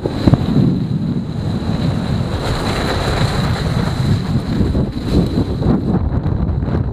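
Bike tyres crunch and rattle over hard snow at speed.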